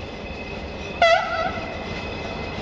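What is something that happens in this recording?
A locomotive horn gives a short blast.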